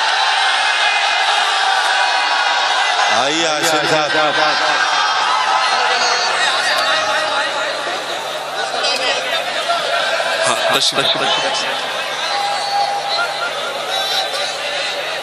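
A large crowd cheers and chatters loudly throughout.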